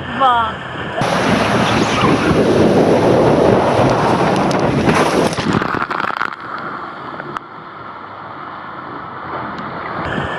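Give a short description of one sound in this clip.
Rushing water churns and roars around a boat.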